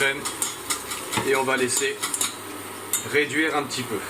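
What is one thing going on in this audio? A whisk scrapes and clinks against a metal pan.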